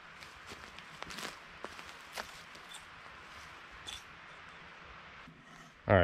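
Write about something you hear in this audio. Footsteps crunch on loose wood chips.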